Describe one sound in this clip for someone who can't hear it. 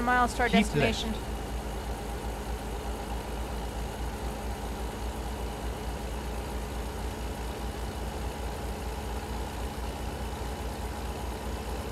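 A truck engine hums steadily as the truck drives along the road.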